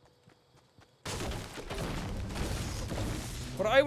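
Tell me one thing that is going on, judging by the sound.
A pickaxe strikes a tree with hard knocks.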